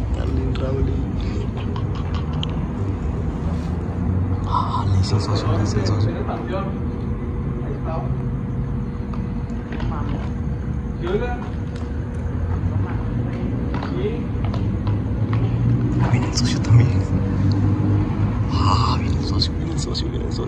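A low, steady hum of city traffic fills the outdoor night air.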